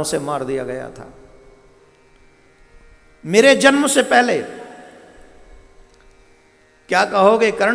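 A man sings through a microphone and loudspeakers, in phrases with pauses between them.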